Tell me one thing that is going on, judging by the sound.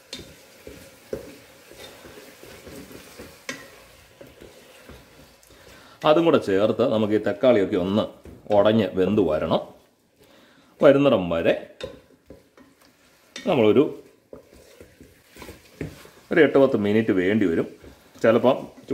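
A wooden spoon scrapes and stirs food in a metal pot.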